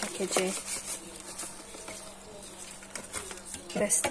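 A paper packet rustles as it is shaken.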